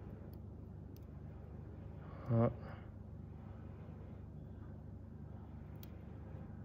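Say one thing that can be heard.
A watch bezel clicks softly as it is turned.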